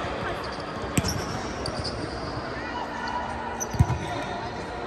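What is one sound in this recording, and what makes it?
A volleyball thuds off a player's arms in a large echoing hall.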